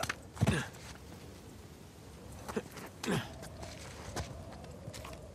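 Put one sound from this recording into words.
Hands and boots thud and scrape against stone while climbing.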